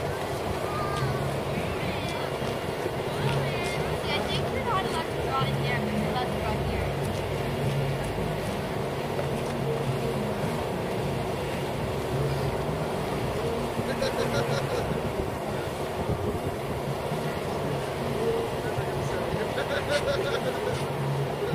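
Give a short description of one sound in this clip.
Young children call out faintly in the distance.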